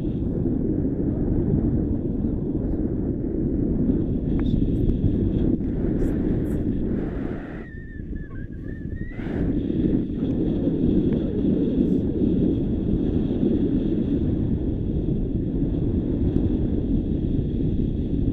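Strong wind rushes and buffets loudly against the microphone, easing briefly before returning.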